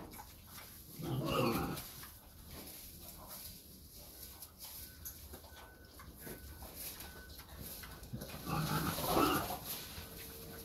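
A sheep bleats loudly nearby.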